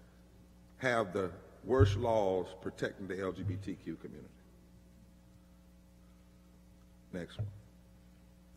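A man speaks with animation into a microphone, heard over loudspeakers in a large room.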